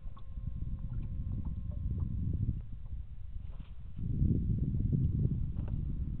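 Small waves lap against a boat's hull.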